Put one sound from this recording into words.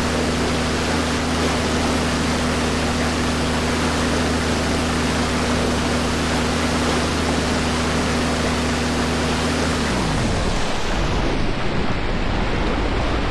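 Water rushes and splashes against a boat's hull.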